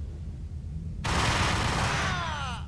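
Gunshots fire in a loud, rapid burst.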